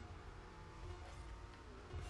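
A rocket boost roars briefly.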